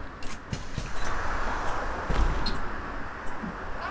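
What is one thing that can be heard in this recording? Bus doors hiss open.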